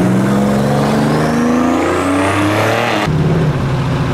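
A car engine roars loudly as the car accelerates past, its pitch rising.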